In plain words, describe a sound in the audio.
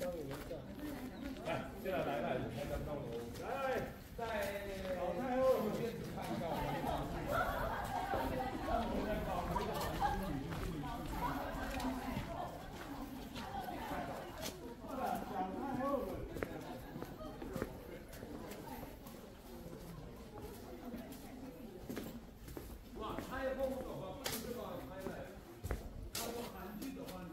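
Women and men talk casually nearby, outdoors.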